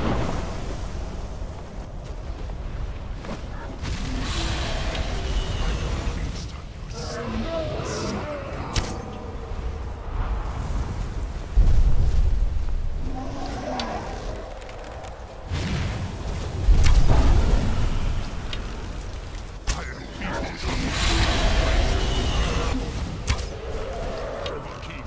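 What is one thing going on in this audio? Strong wind howls steadily outdoors.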